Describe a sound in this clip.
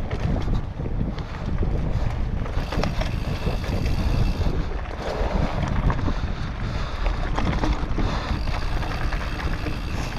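A bike frame rattles and clatters over bumps.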